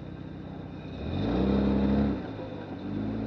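A vehicle engine revs up briefly, then settles back.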